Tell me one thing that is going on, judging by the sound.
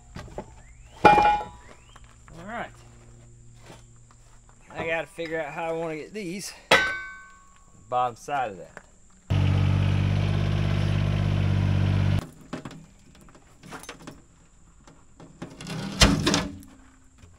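Heavy metal pieces clank and bang together.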